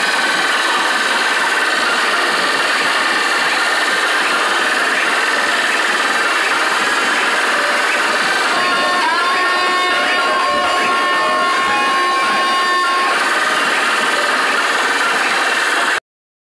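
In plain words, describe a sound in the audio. Loud music blares from huge loudspeaker stacks outdoors.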